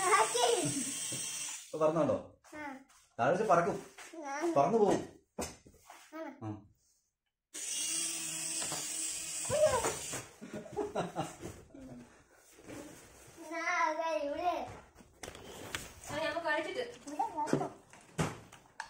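A young boy talks and laughs excitedly up close.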